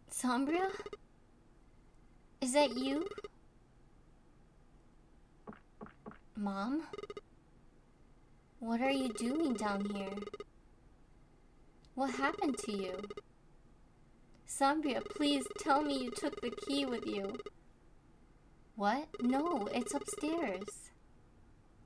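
A young woman speaks with animation into a close microphone, in short bursts.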